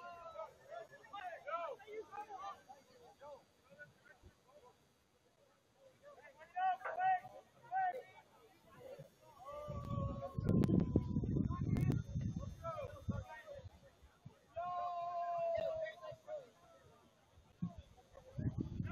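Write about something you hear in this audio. A crowd of young men shout and cheer in the distance outdoors.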